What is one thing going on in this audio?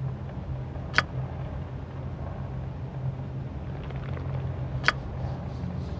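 A lock rattles and clicks as it is forced.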